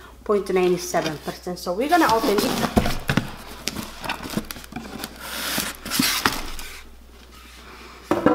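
Cardboard flaps scrape and rustle as a box is opened.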